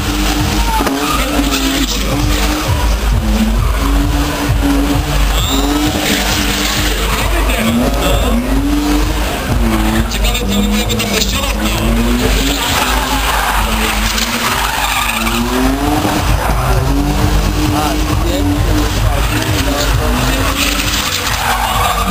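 A car engine revs hard and whines, rising and falling.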